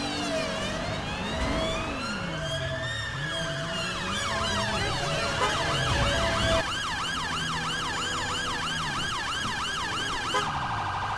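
A police siren wails loudly, switching between a slow wail and a fast yelp.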